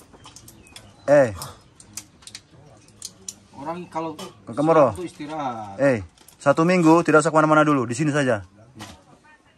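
A man speaks nearby with animation.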